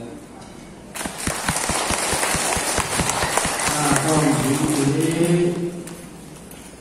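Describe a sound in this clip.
An audience claps its hands.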